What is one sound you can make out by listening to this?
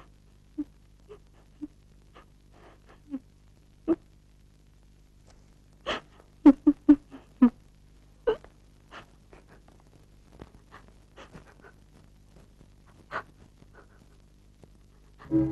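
A young woman sobs quietly nearby.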